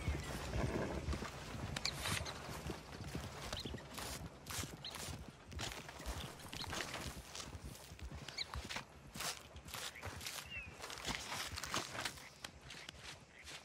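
Wet flesh squelches and tears as an animal carcass is skinned.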